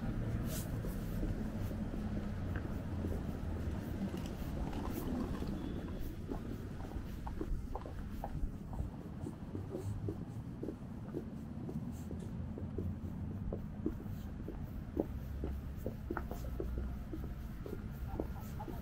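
City traffic rumbles.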